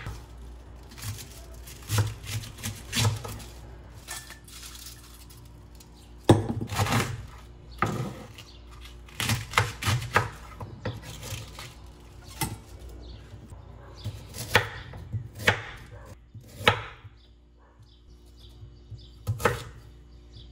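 A knife chops through vegetables on a wooden board with sharp knocks.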